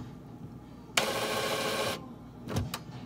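A printer motor whirs briefly.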